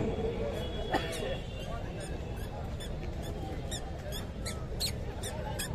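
A large crowd murmurs and chatters in the distance outdoors.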